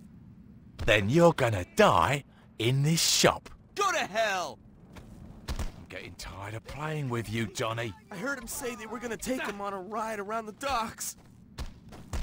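Another man's voice speaks angrily in a game.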